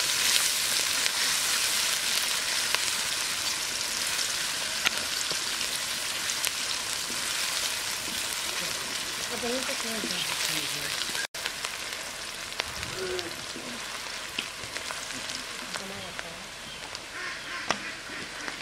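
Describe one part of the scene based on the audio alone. Onions sizzle and crackle steadily in a hot pan.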